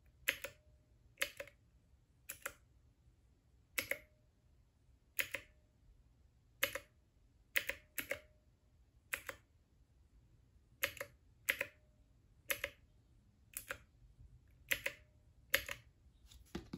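Plastic buttons click sharply, one press at a time.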